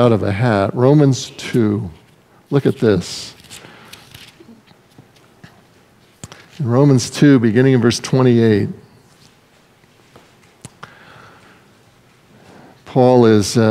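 An elderly man speaks slowly and deliberately through a microphone, with pauses between phrases.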